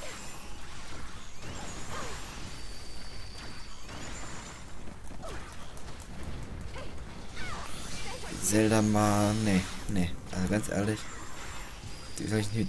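Sword strikes and magic blasts crash out in quick succession.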